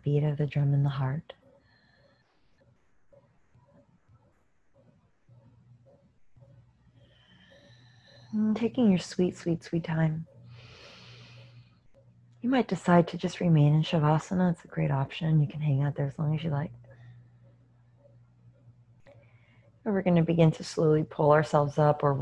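A woman speaks slowly and calmly, close to a microphone, with long pauses.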